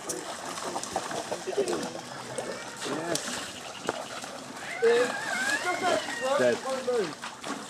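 Water splashes as a man wades through a shallow stream.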